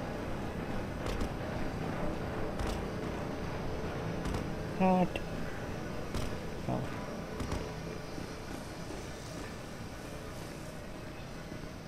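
Footsteps run on a hollow walkway.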